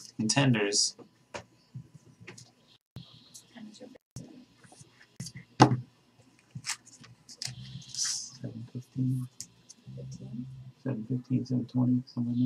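Trading cards rustle and click as hands shuffle them.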